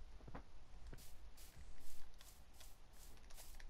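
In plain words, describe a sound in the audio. Footsteps crunch softly on grass at a steady pace.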